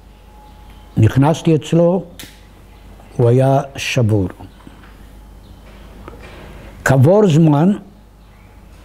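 An elderly man speaks calmly and slowly in short phrases, close by.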